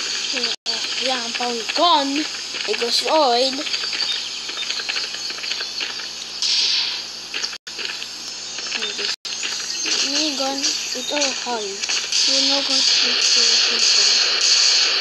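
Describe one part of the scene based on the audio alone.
A child talks close to a microphone.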